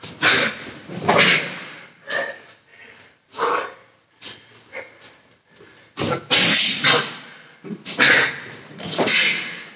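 A man's kick swishes through the air.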